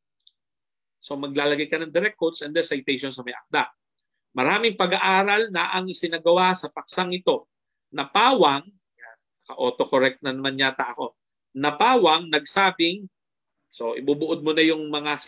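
A man speaks calmly into a microphone, as if in an online lecture.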